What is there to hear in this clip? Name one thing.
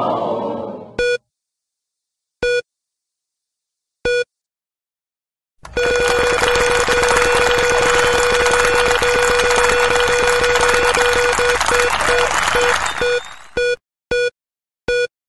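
Short electronic beeps sound at intervals.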